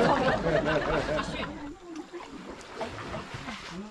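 Muddy water splashes and sloshes.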